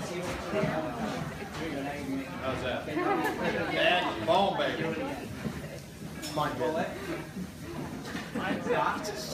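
A group of men and women chatter and laugh with animation close by.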